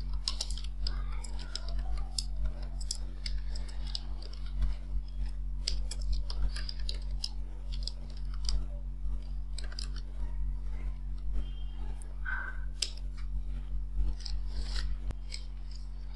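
A keyboard clatters with quick, light key taps.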